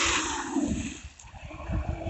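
A small radio-controlled car splashes through a muddy puddle.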